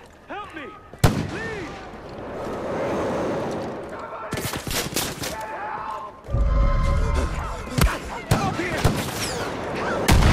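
A rifle fires loud, sharp shots.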